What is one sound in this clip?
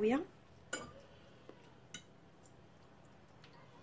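A fork clinks and scrapes against a glass baking dish.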